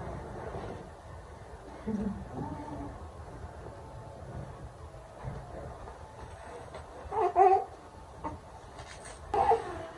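Soft baby clothes rustle as they are handled.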